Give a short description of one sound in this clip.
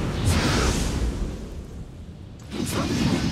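A magical blast whooshes and crackles.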